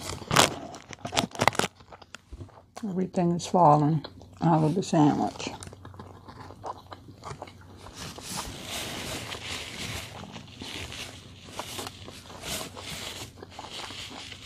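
Paper rustles and crinkles close by.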